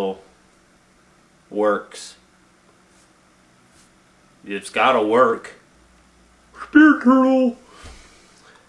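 A man speaks close by in short, animated bursts.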